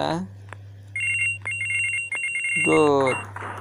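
Game coins chime in quick bright tones as they are picked up.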